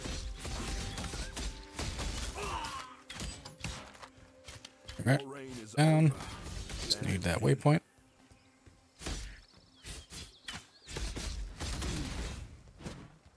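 Blades slash and strike against bodies in quick bursts.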